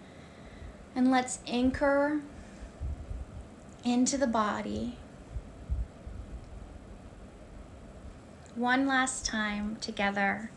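A woman speaks calmly and slowly, close to the microphone, with long pauses.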